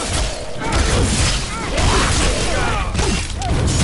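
Fire bursts and crackles with sparks.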